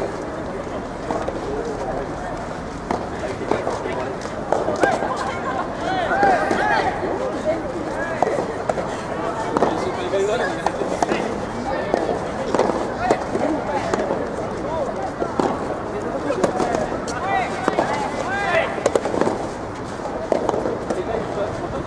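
Rackets strike a tennis ball back and forth outdoors.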